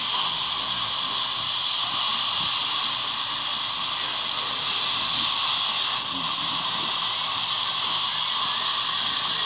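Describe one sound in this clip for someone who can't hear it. A dental suction tube hisses steadily close by.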